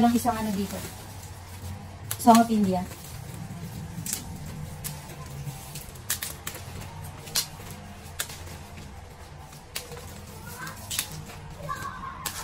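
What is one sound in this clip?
Leaves rustle as a young woman handles plant stems.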